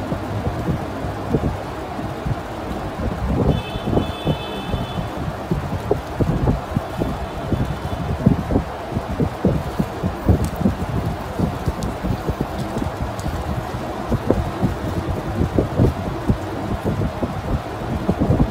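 A soft, wet mass squelches wetly, up close.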